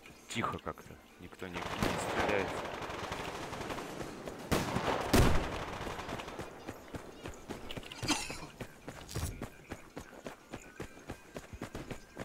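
A rifle fires close by in bursts.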